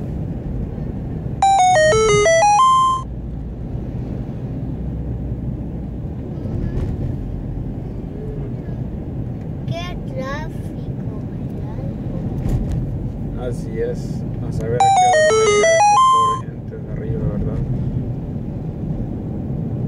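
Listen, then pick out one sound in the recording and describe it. A car engine hums steadily with tyres rumbling on the road.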